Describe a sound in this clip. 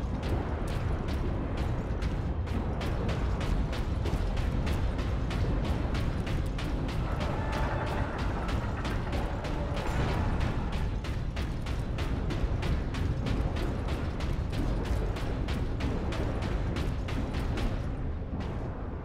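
Heavy armoured footsteps clank rapidly on a metal floor.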